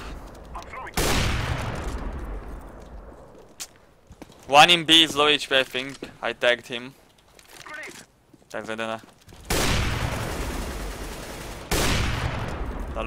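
Rifle shots crack loudly and echo away.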